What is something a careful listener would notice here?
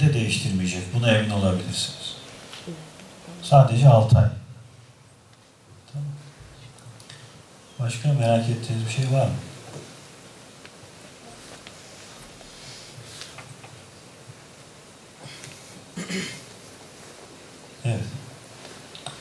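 A man speaks calmly into a microphone, with pauses, in a room with some echo.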